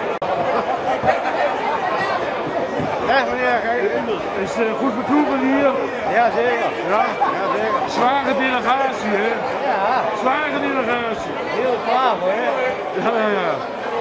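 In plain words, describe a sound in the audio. An elderly man talks cheerfully close by.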